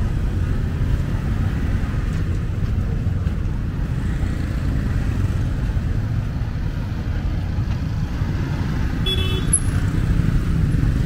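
City traffic rumbles steadily along a busy street outdoors.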